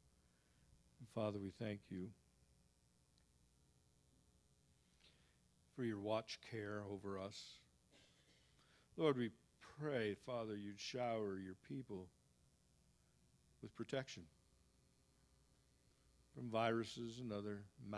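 A middle-aged man speaks slowly through a microphone.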